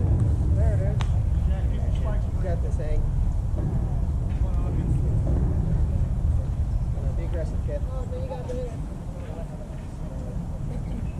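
Men call out and chatter at a distance across an open field.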